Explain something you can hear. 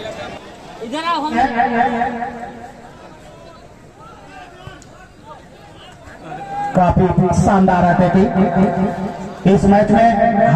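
A crowd cheers and shouts loudly in bursts.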